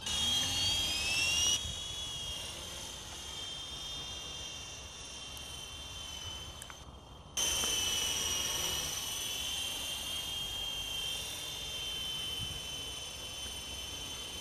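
A model helicopter's motor whines at a high pitch, rising and falling as it flies.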